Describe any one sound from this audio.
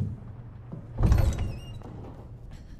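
A heavy wooden door creaks and thuds open.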